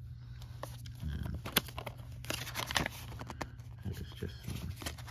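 A paper insert rustles as fingers handle it.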